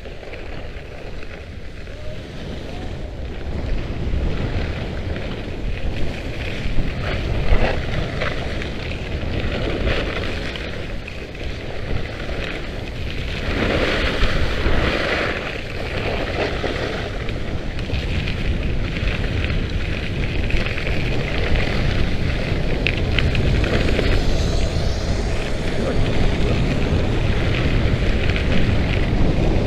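Skis scrape and hiss over snow close by.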